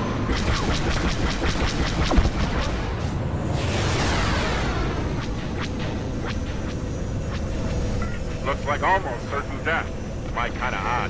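Spacecraft engines roar steadily.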